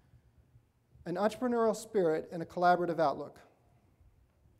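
A middle-aged man speaks clearly into a microphone.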